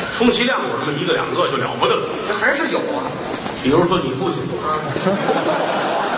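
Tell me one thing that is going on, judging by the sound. A middle-aged man speaks with animation into a microphone on a stage.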